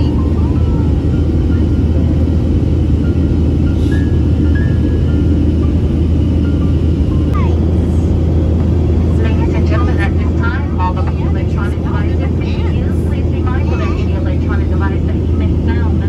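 Jet engines drone steadily, heard from inside an airliner cabin.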